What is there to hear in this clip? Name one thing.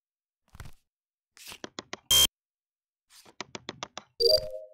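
A card swipes through a reader with a short electronic beep.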